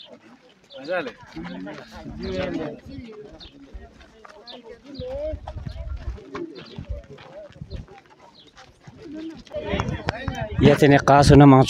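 Men and women chatter close by outdoors.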